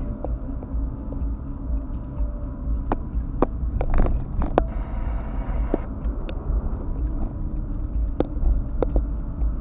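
Tyres roll over a bumpy road.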